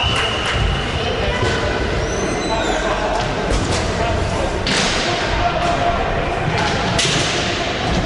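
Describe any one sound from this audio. Sticks clack against a ball.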